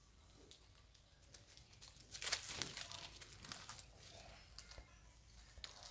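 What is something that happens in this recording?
Dry leaves rustle and crunch under a monkey's feet.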